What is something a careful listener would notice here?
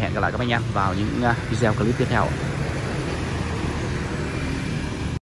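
Traffic rumbles steadily along a nearby road outdoors.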